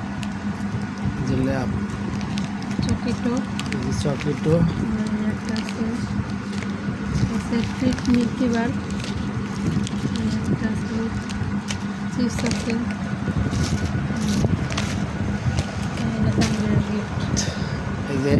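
Plastic candy wrappers crinkle and rustle as they are handled close by.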